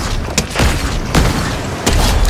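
A rifle fires a single sharp shot.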